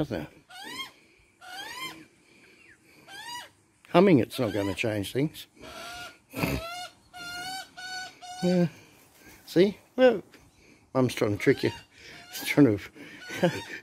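Magpies warble and carol loudly and close by.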